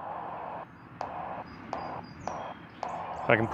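A radio microphone button clicks several times.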